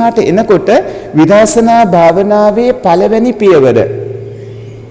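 A man speaks in a drawn-out, sing-song voice through a microphone.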